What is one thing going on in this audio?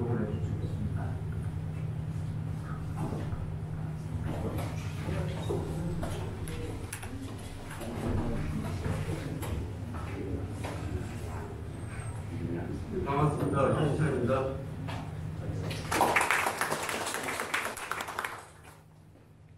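A crowd of people chatters in the room.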